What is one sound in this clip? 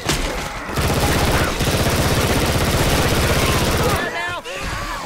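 A rifle fires rapid bursts up close.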